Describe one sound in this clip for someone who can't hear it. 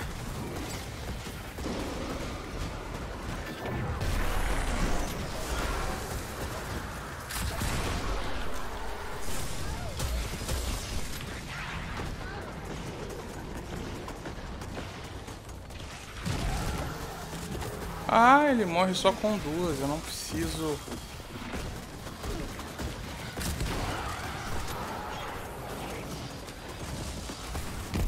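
Gunfire and explosions from a video game pound and crackle throughout.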